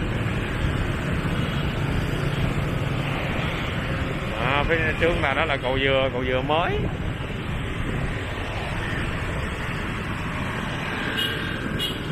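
Motorbike engines hum steadily close by.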